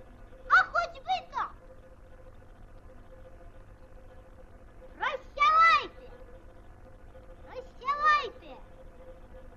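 A child's high cartoon voice speaks with animation.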